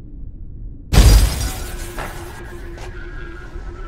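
A magical shimmer whooshes loudly and fades.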